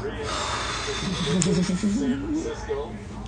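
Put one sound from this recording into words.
A young man groans dramatically.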